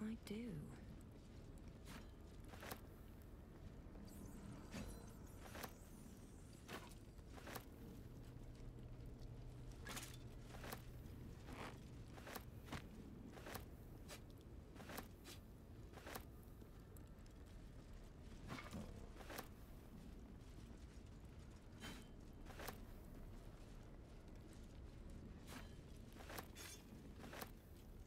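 Short clicking sounds of items being picked up come at intervals.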